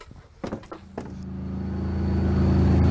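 A tank engine rumbles and grows louder.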